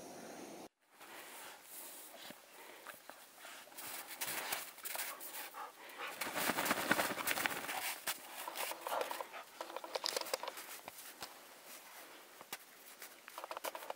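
A dog's paws crunch on snow.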